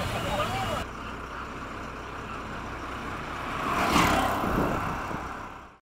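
A motorized rickshaw engine putters as it drives past close by.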